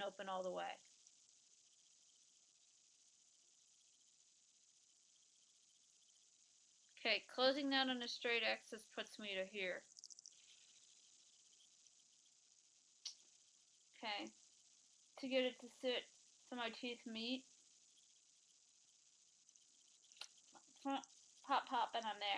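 A woman speaks close to a microphone in bursts, with long pauses.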